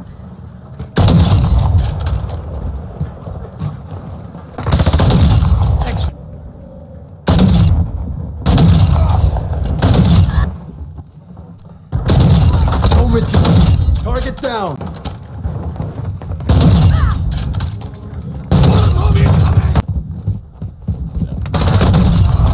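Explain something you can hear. Sniper rifle shots boom loudly, one at a time, each followed by a long echo.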